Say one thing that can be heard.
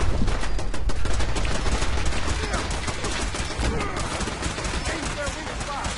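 A laser rifle fires repeated zapping shots.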